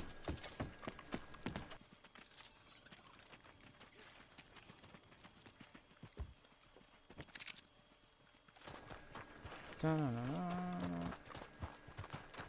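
Footsteps run quickly across wooden boards and then on dirt.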